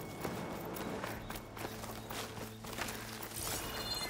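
Leaves rustle as something brushes through dense plants.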